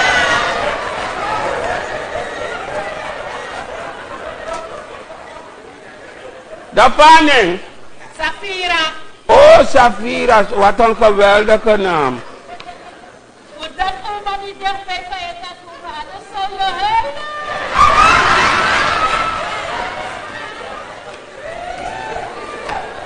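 An audience laughs in a large hall.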